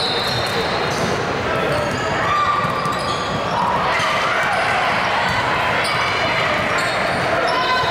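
A basketball bounces as it is dribbled.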